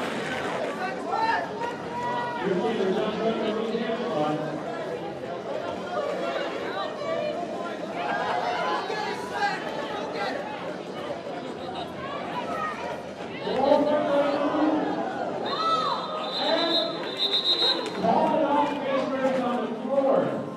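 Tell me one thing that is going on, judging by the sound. Roller skate wheels roll and rumble across a hard floor in a large echoing hall.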